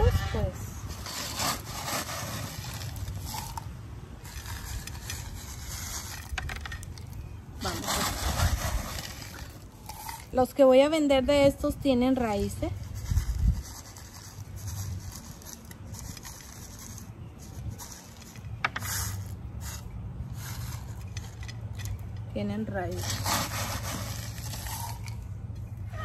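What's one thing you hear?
Small pebbles pour and rattle into a pot.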